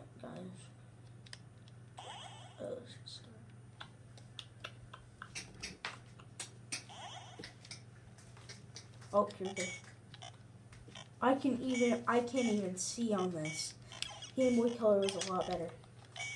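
Plastic clicks and taps as a handheld game console is handled.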